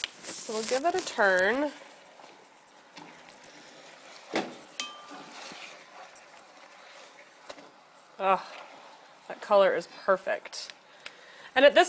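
Metal tongs clink against the side of a pot.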